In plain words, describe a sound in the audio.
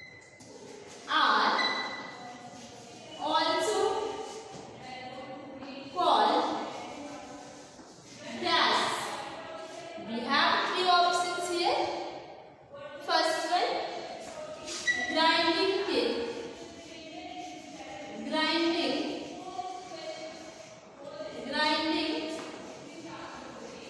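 A young woman speaks clearly and slowly, as if teaching, in a room with a slight echo.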